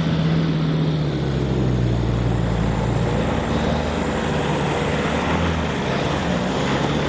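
A truck engine rumbles as it climbs a dirt track toward the listener.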